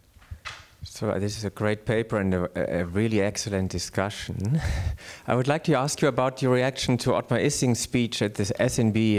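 A middle-aged man speaks with animation into a handheld microphone in a large room.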